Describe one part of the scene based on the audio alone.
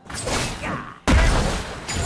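A magic spell bursts with a whooshing blast.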